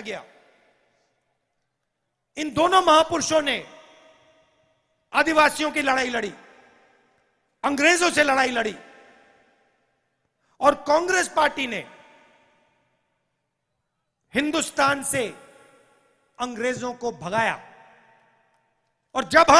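A man speaks forcefully through a microphone and loudspeakers outdoors, in short bursts with echoing pauses.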